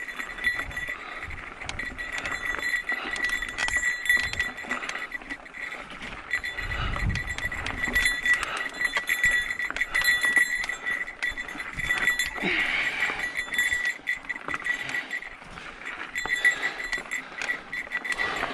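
Bicycle tyres crunch and rattle over a rocky dirt trail.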